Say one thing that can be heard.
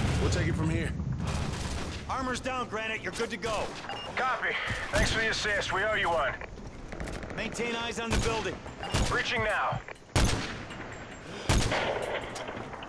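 Sharp rifle shots crack, with echoing booms.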